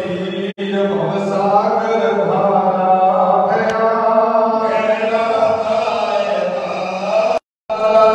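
Men sing a slow chant together, heard from a short distance in a reverberant room.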